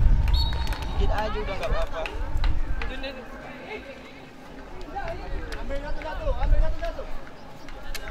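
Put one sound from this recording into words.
Young men shout to each other from a distance across an open field.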